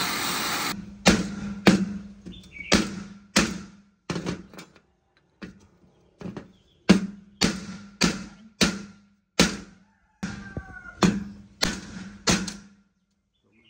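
A power tool whirs in short, repeated bursts.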